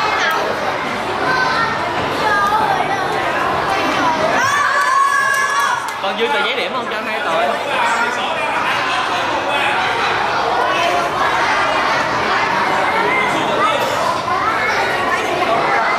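A crowd of children shout and cheer excitedly close by.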